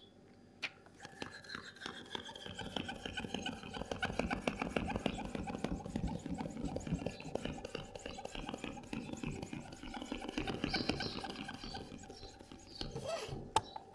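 A hand pump pushes air into a balloon with a steady rushing hiss.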